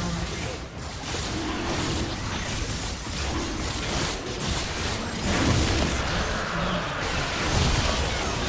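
Magic blasts and hits crash and whoosh during a busy fight.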